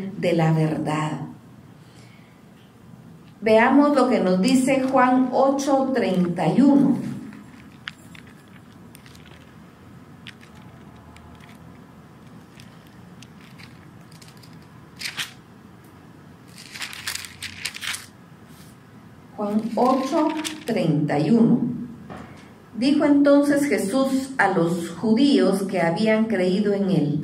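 A middle-aged woman speaks softly and slowly into a microphone, with long pauses.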